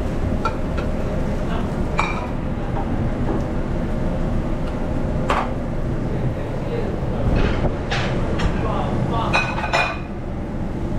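Metal pans clank against the stove.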